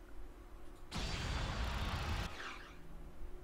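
A loud explosion roars and rumbles, then dies away.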